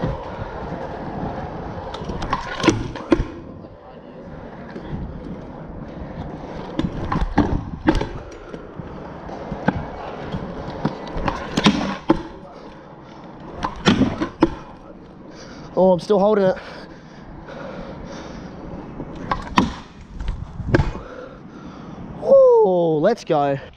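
Scooter wheels roll and rumble over concrete.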